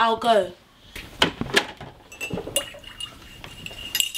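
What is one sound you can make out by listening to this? Cups clink on a counter.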